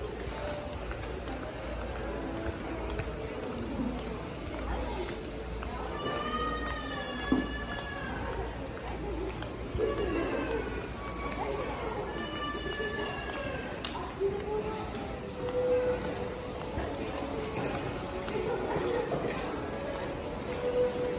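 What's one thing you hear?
A crowd of people murmurs and chatters nearby in a covered walkway.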